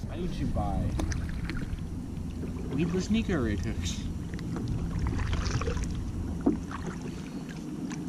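A kayak paddle splashes through water.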